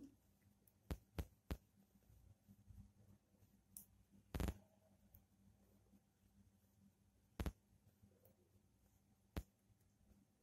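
Small glass beads click softly against each other.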